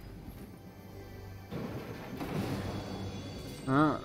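A treasure chest opens with a bright shimmering chime.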